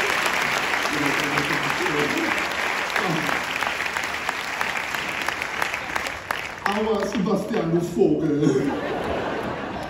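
A man speaks out loudly in a large echoing hall.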